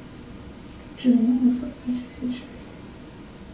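A woman speaks a few quiet words nearby.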